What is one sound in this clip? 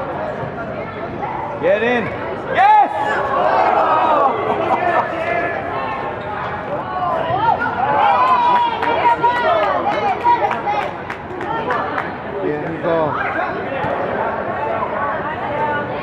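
A ball is kicked with dull thuds.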